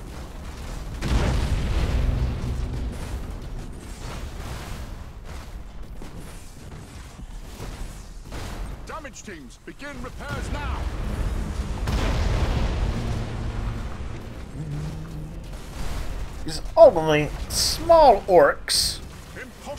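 Weapons fire in bursts in a space battle.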